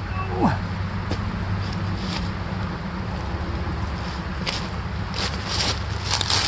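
Footsteps crunch on dry leaves close by.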